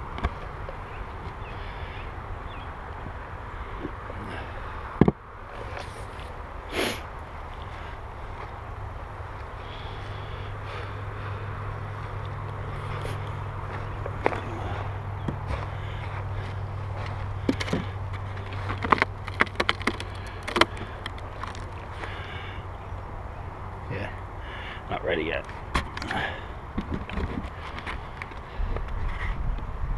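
Wooden beehive parts knock and scrape together as they are handled.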